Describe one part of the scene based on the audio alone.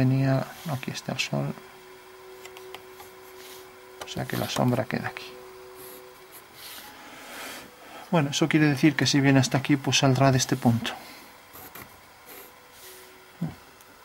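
A pencil scratches lines on paper.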